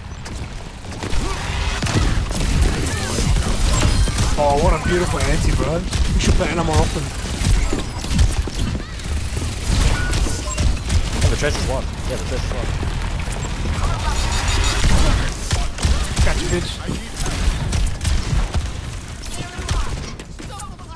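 Rapid gunfire rattles and booms in quick bursts.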